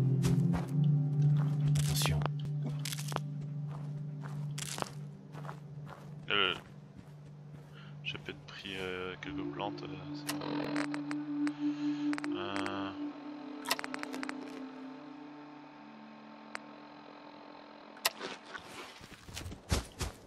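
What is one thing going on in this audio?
Footsteps crunch over gravel and dry grass.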